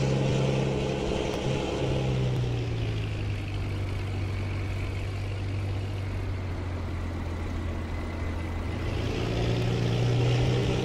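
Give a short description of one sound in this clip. A truck's diesel engine idles with a steady low rumble.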